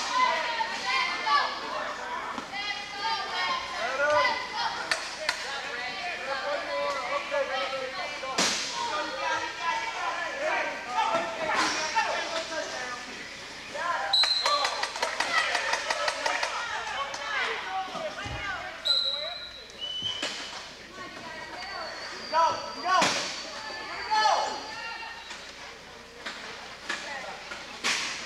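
A crowd of people chatters and calls out in a large echoing gym.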